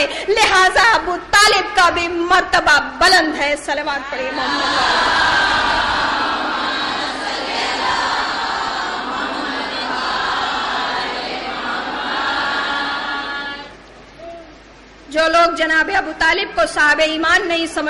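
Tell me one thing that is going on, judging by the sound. A woman speaks with passion through a microphone.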